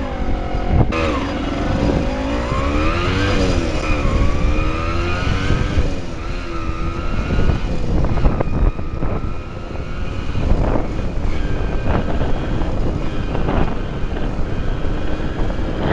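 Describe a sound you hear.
A motorcycle engine hums up close, its pitch rising and falling as it speeds up and slows.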